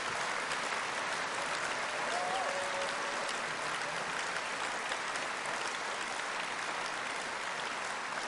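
A large crowd applauds loudly in a big echoing hall.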